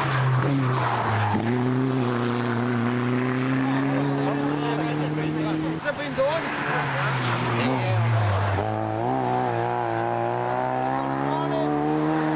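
A rally car engine roars and revs close by.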